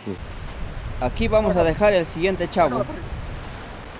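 A man speaks loudly outdoors.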